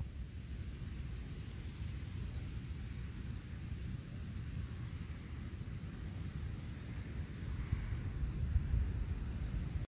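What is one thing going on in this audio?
Dry leaves rustle in the wind.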